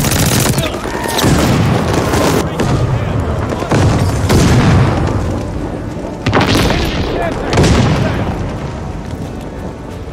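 Explosions boom from a video game.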